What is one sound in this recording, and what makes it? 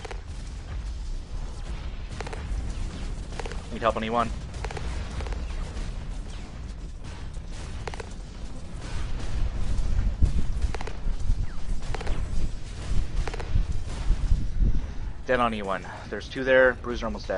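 Heavy guns fire in bursts.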